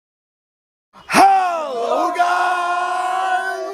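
A young man lets out a loud, long drawn-out yell close by.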